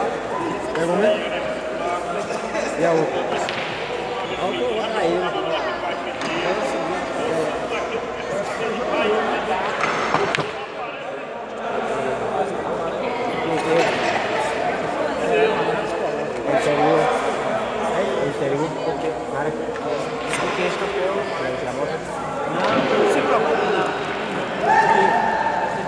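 Many men chatter around a large echoing hall.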